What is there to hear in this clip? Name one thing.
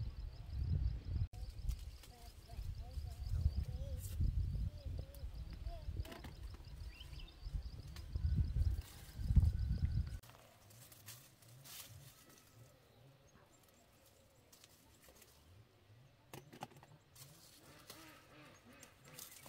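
Leaves rustle softly as tomatoes are picked from the plants.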